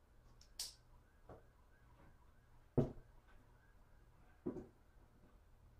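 Objects knock and thud on a tabletop a few times.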